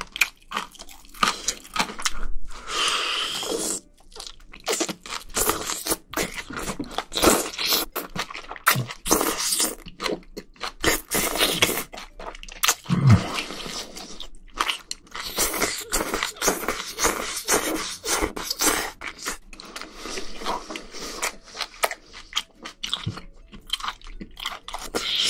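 A man chews wetly and smacks his lips, close to the microphone.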